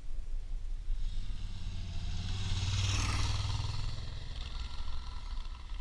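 A motorcycle approaches, roars past close by and fades away.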